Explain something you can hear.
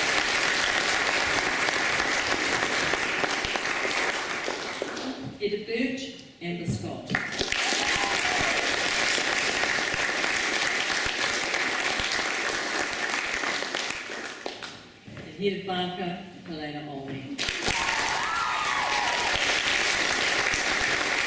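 A crowd claps and applauds steadily in a large hall.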